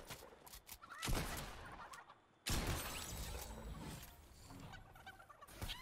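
Gunfire from a video game bursts out in quick rounds.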